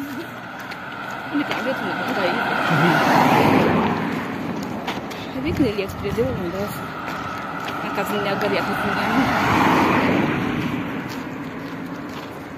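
Cars drive past one after another, each swelling and then fading.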